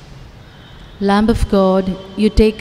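An elderly man sings a sustained chant into a microphone in a reverberant hall.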